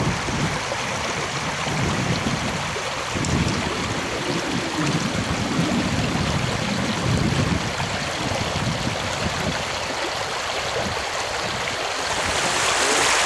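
Small waves lap gently against a rocky shore.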